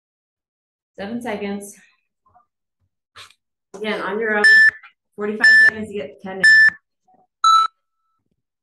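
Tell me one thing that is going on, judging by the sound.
A woman talks energetically through an online call.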